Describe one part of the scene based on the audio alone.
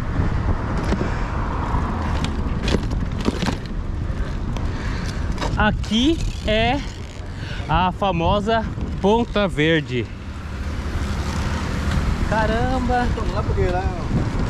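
A bicycle rattles over paving stones.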